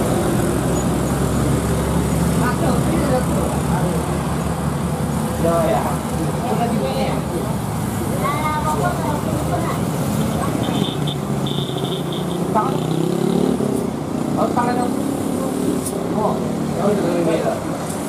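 Motorcycle engines buzz past close by.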